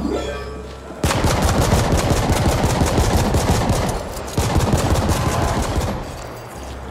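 Automatic gunfire rattles rapidly and loudly.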